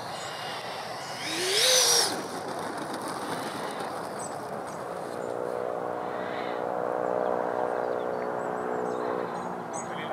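A small jet engine whines loudly, swelling up and then settling to a steady hum.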